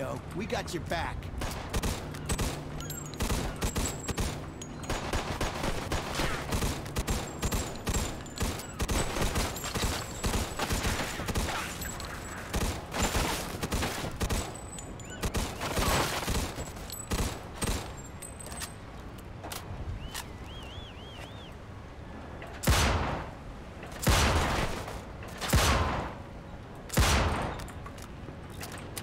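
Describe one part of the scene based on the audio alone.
Submachine gun fire rattles in rapid bursts.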